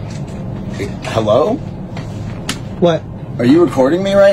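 A young man speaks casually nearby.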